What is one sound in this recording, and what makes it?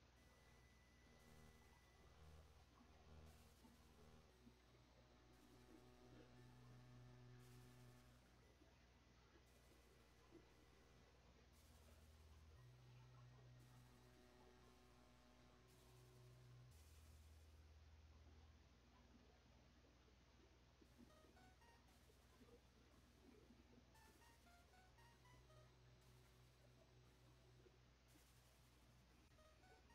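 Chiptune music with a low bass line and beeping melody plays steadily.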